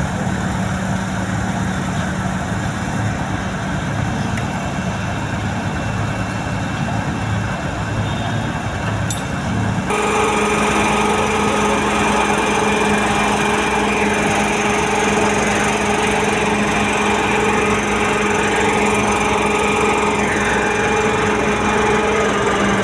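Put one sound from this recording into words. A large diesel engine hums and rumbles steadily nearby.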